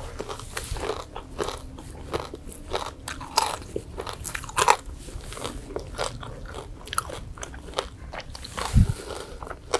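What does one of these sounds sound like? Fresh greens snap and crackle between fingers.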